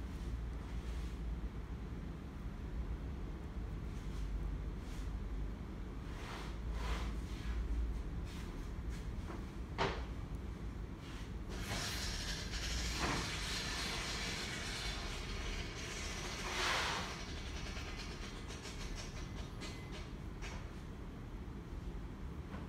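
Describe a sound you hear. Fingers softly rub and smooth damp clay.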